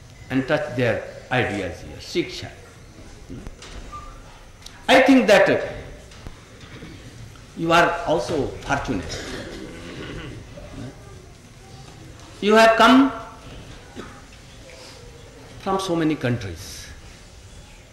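An elderly man speaks slowly into a microphone, in phrases broken by pauses.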